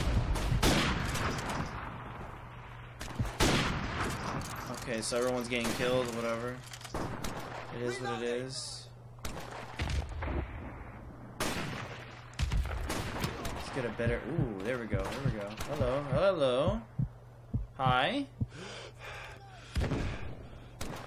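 A rifle fires sharp, loud single shots.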